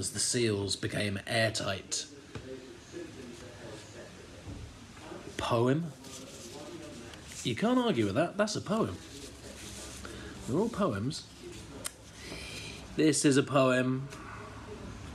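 A man speaks close up, with pauses.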